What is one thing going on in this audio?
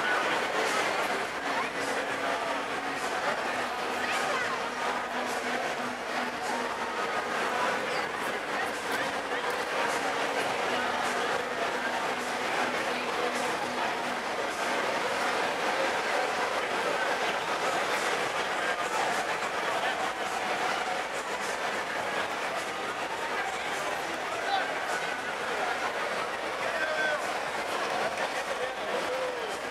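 A large crowd chatters outdoors on a busy street at night.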